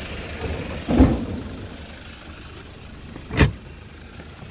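A metal door latch clanks loudly.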